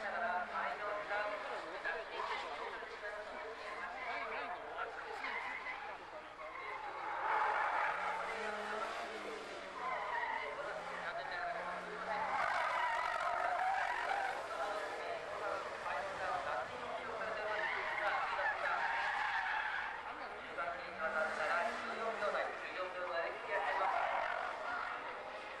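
Tyres squeal and screech on tarmac.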